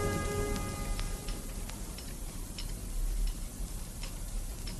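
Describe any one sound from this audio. A spoon clinks against a cup as it stirs.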